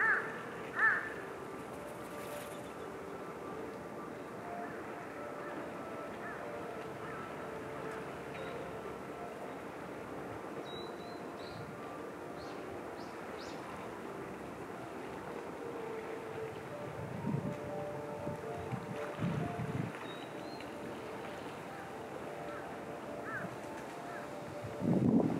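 Calm sea water laps gently against rocks.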